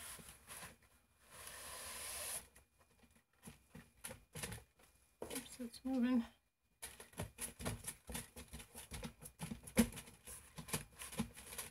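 Gloved hands rub and press tape onto a board with soft scuffs and taps.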